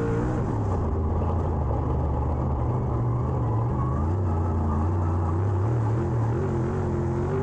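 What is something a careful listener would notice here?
A race car engine roars loudly up close, its pitch rising and falling with the throttle.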